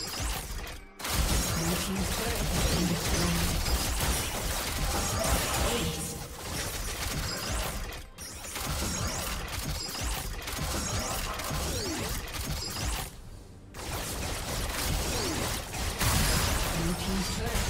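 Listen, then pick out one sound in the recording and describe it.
Game spell effects whoosh and crackle in a busy fight.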